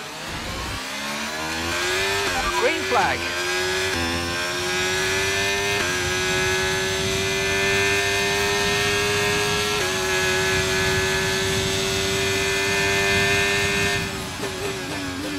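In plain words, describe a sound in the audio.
A racing car engine roars, climbing steadily in pitch as it speeds up.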